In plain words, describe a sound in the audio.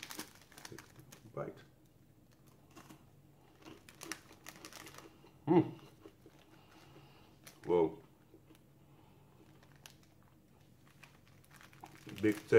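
A plastic wrapper crinkles close by.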